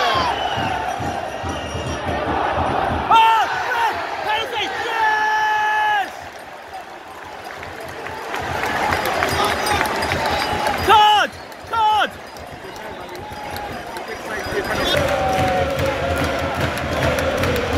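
A large stadium crowd roars and chants in the open air.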